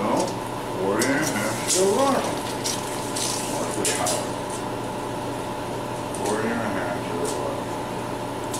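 A man talks nearby in a calm voice.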